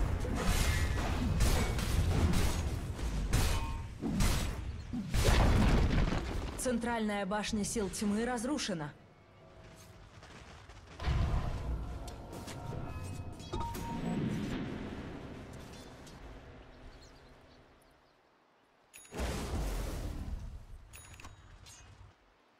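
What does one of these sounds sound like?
Game fight effects clash and crackle with spell blasts.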